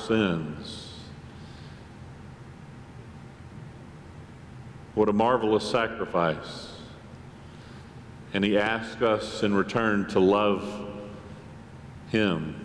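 A man preaches with animation in a large echoing hall, heard through a microphone, with long pauses between phrases.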